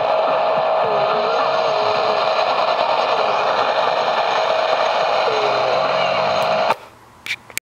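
A radio hisses with loud static and whistling between stations.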